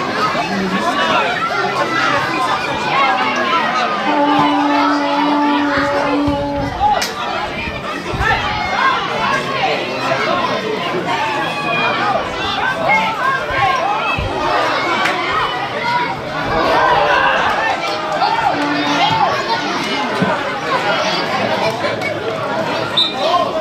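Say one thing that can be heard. Young players shout to each other on the field.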